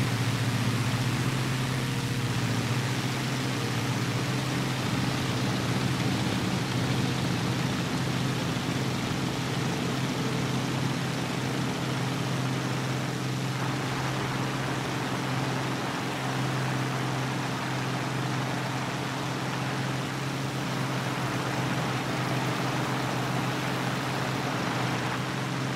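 Wind rushes past a flying aircraft.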